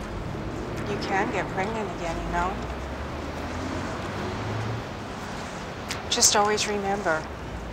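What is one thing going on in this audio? A young woman speaks calmly and softly nearby.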